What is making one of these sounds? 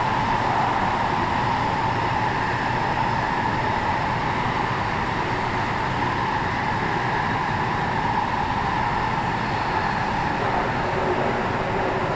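A train rumbles and roars steadily along the tracks.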